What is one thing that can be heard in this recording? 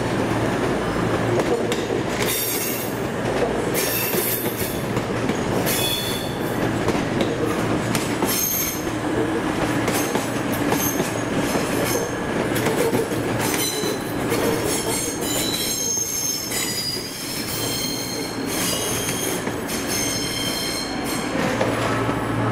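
Steel wheels squeal and screech against the rails.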